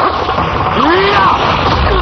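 A man shouts with effort.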